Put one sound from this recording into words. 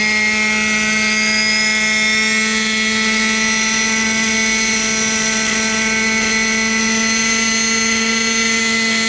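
A small model helicopter whines steadily as it hovers low over the grass nearby.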